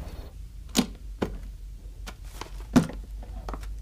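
A wooden box lid knocks and thuds shut.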